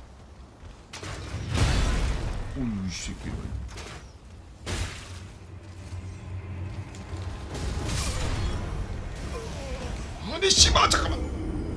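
Metal weapons clash and strike with heavy thuds.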